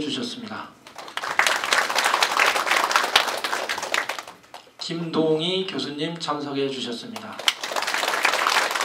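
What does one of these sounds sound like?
A crowd applauds in a room.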